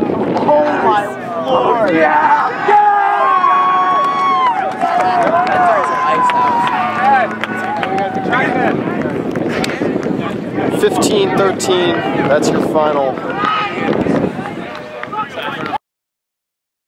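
A crowd of young men and women cheers and shouts loudly outdoors.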